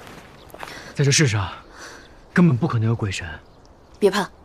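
A young man speaks calmly and nearby.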